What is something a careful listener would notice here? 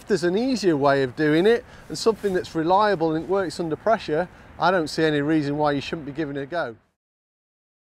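A man speaks calmly and clearly into a clip-on microphone.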